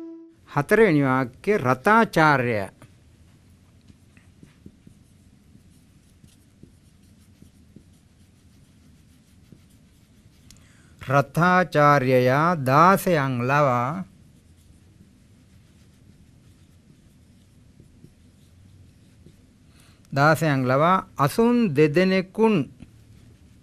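An elderly man speaks slowly and calmly, close by, in short phrases.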